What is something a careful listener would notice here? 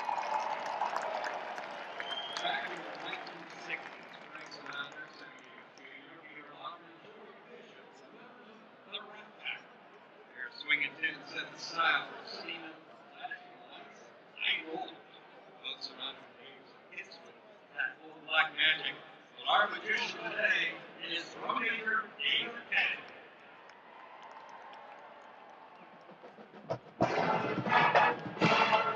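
A large crowd cheers and murmurs in the stands.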